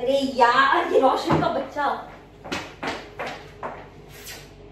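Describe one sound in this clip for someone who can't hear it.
Young women talk and laugh excitedly close by.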